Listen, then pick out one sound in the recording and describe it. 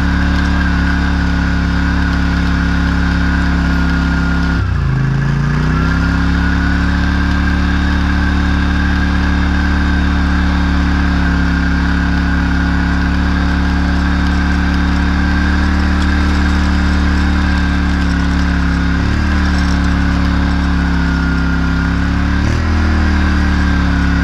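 A tractor engine drones steadily close by, with brief dips in revs.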